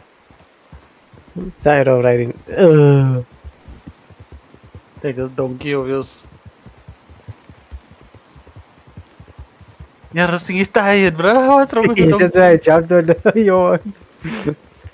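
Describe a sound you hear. A horse's hooves thud steadily as it gallops.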